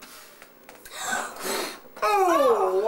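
A young girl blows out candles in a few hard puffs.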